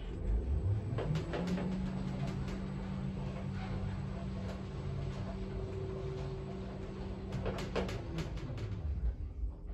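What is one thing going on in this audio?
An elevator hums steadily as it travels down.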